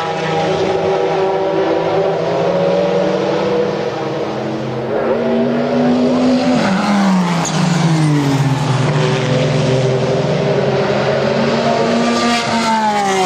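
Racing car engines roar loudly, revving and shifting as the cars speed past.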